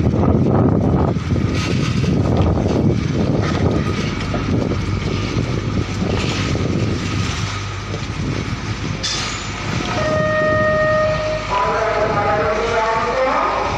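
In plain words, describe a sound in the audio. A heavy truck engine rumbles loudly as a truck pulls away.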